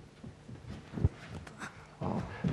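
A kick thuds against a padded mitt.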